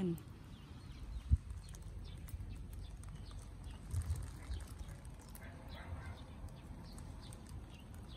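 Leaves rustle softly as a hand brushes through tomato plants.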